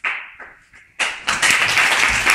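A violin plays briefly.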